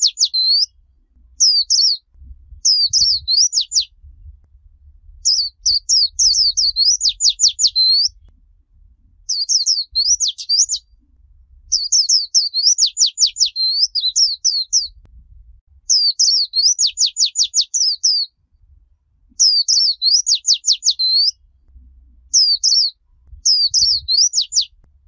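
A small songbird sings loud, quick, high twittering phrases close by, in bursts with short pauses.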